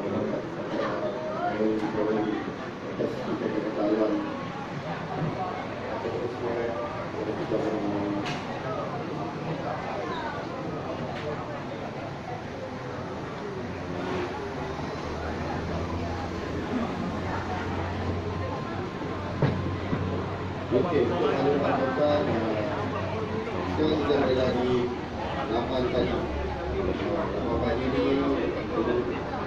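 A crowd of men and women chatters throughout a large, echoing hall.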